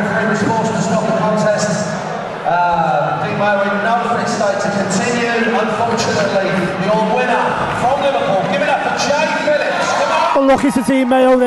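A man announces loudly over a loudspeaker in a large echoing hall.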